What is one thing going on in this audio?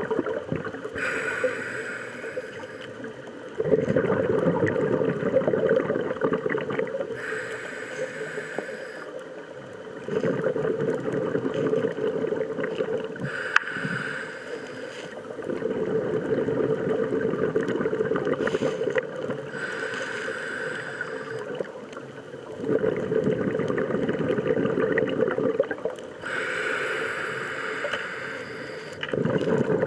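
A scuba diver breathes in through a regulator with a hissing draw.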